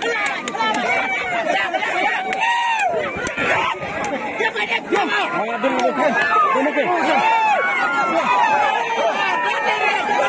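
A crowd of men shout and cheer excitedly close by, outdoors.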